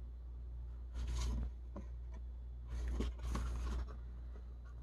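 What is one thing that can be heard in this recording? Stiff paper rustles and flaps as a pop-up card is opened and closed.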